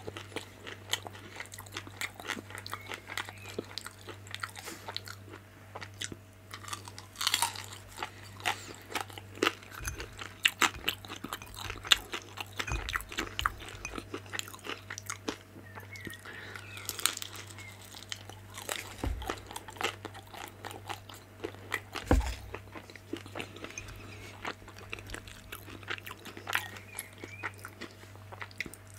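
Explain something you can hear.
A person crunches and chews crispy dumplings close to a microphone.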